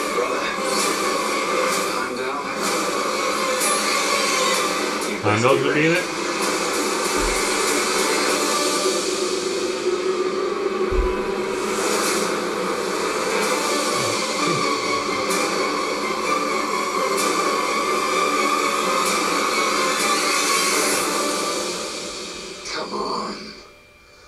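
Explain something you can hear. Dramatic music plays loudly through a loudspeaker.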